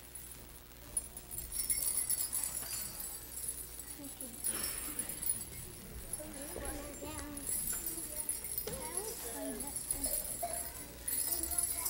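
An adult woman talks quietly with children.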